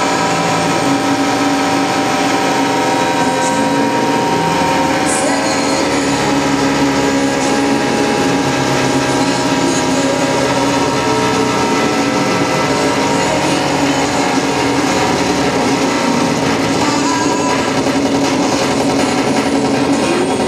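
Loud live music plays through amplifiers in a room.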